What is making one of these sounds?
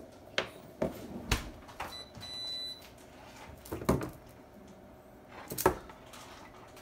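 A metal pan clatters and knocks against a stovetop.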